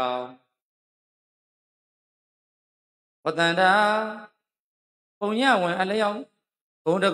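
A middle-aged man speaks calmly into a microphone in short phrases, with pauses.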